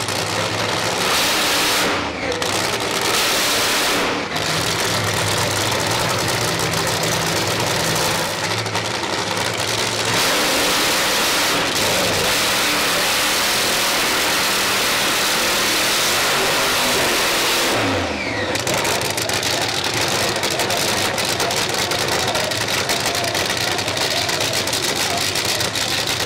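A race car engine roars loudly and revs up and down.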